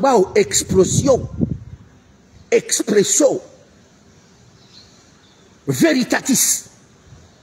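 A man speaks close up with emphasis in short bursts.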